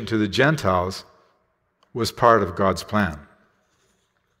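A middle-aged man reads aloud calmly through a microphone.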